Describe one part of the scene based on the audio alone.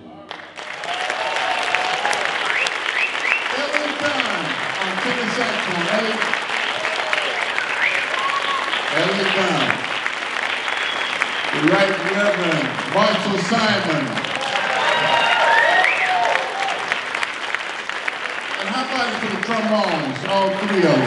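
A jazz big band plays a lively tune in a hall.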